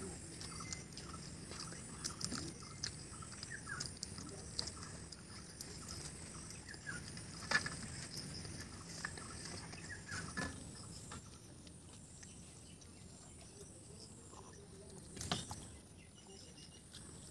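Two boys chew and smack their lips while eating, close by.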